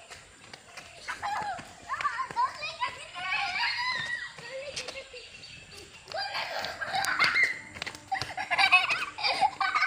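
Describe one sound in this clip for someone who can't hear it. A young boy shouts excitedly nearby.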